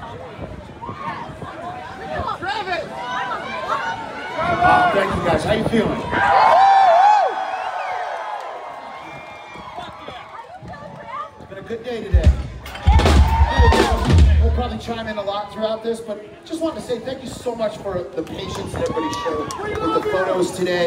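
A man sings loudly into a microphone over a loudspeaker system.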